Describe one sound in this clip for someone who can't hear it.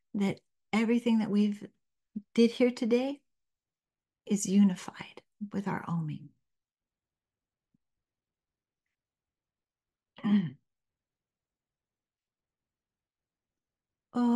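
An elderly woman speaks softly and calmly, close to a microphone.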